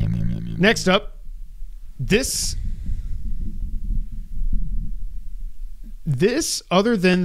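A second man answers calmly close to a microphone.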